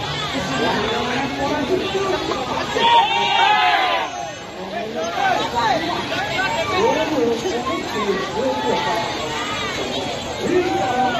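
A large crowd of young men shouts and cheers loudly outdoors.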